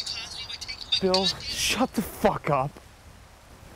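A young man speaks in a strained, upset voice close by.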